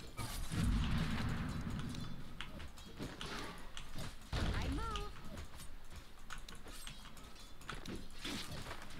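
Game spells crackle and whoosh in bursts.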